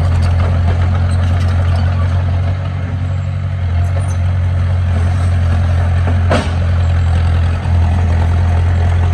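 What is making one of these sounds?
Rocks and dirt scrape as a bulldozer pushes them.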